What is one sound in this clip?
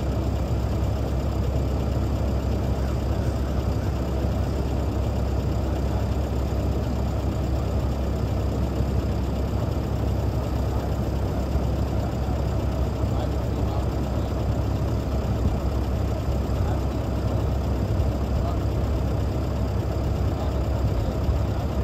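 A large truck engine idles with a steady low rumble.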